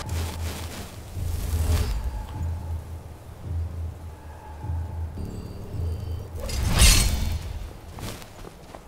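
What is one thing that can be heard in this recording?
Crackling electric magic buzzes and zaps in bursts.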